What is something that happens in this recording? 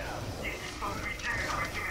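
An energy blast whooshes and crackles.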